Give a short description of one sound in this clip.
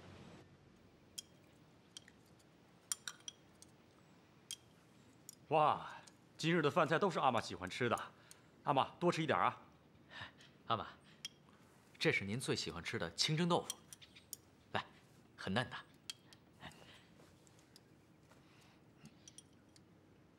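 Chopsticks and bowls clink lightly.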